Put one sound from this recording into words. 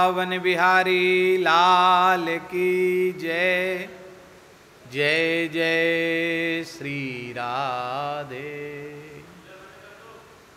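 A man chants in long held notes through a microphone.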